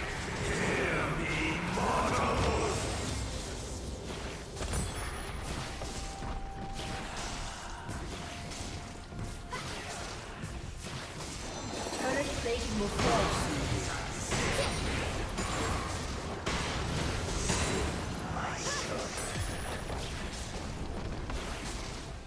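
Game combat effects crackle and thud as spells hit.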